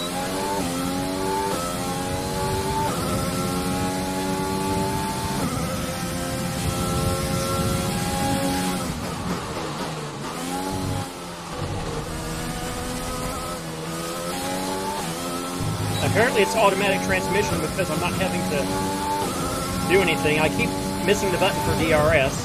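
A racing car engine whines loudly, rising in pitch and dropping with each gear change.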